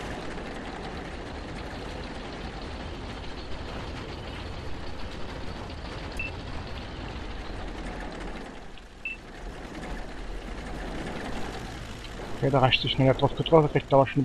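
A tank engine idles with a low, steady rumble.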